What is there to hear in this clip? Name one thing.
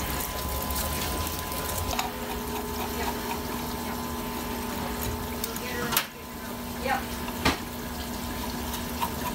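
Small metal parts clink and tap against each other.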